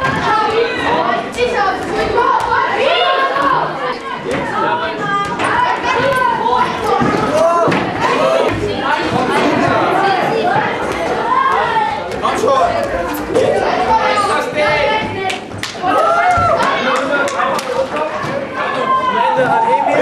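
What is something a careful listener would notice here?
Young boys chatter and shout excitedly in an echoing room.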